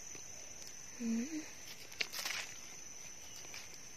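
A knife scrapes soil off a mushroom.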